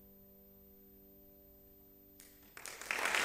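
A choir sings a sustained chord.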